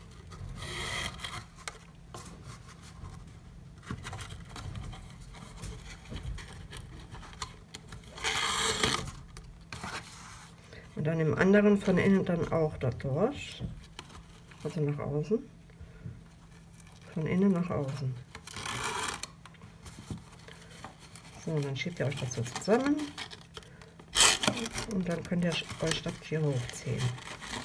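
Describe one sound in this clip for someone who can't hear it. Paper and ribbon rustle and crinkle under handling fingers.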